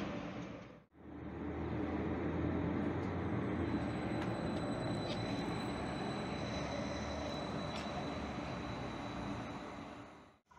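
A train idles with a low hum close by.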